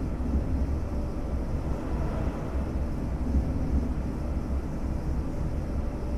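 An electric train rumbles steadily along the rails.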